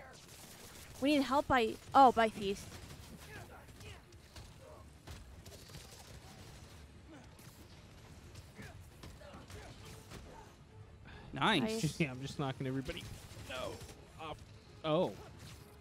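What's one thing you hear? A man talks with animation into a microphone, heard close.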